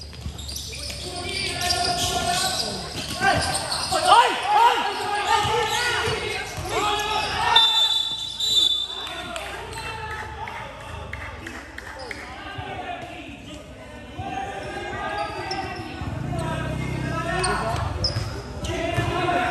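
A crowd of spectators and players shouts and cheers.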